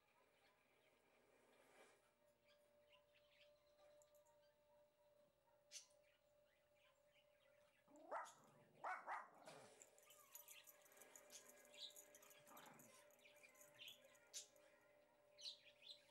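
A hand softly strokes a cat's fur.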